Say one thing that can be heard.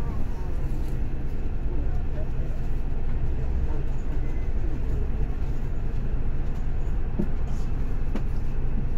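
A tram's motor rumbles steadily, heard from inside.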